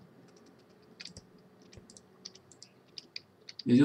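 A game menu opens with soft clicks.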